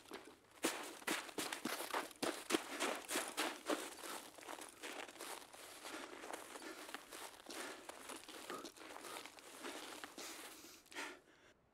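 Footsteps crunch on snow at a steady walking pace.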